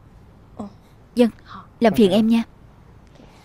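A young woman answers briefly and softly.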